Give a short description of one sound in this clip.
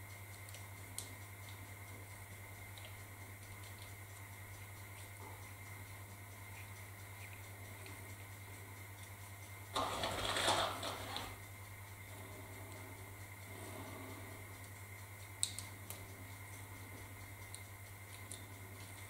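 Small plastic parts click softly as they are handled.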